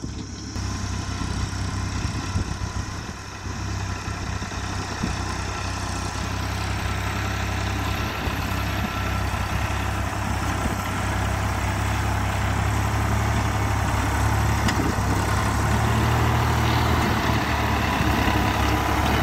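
A tractor blade scrapes and pushes loose soil.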